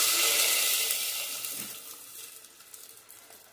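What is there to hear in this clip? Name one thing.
Liquid pours and splashes into a pot.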